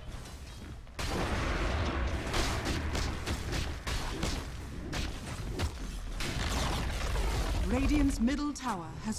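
Game spells and weapon blows clash in a fight.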